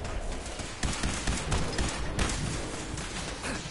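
A heavy gun fires rapid shots.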